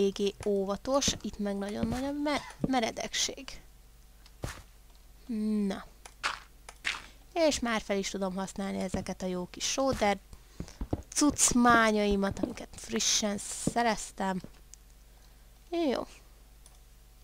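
A woman talks with animation close to a microphone.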